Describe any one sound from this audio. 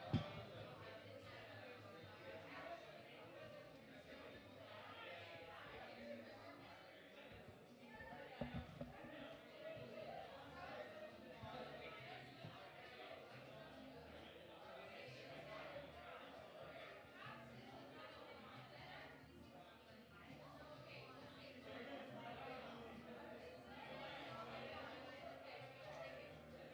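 A group of men and women chat casually in a room nearby.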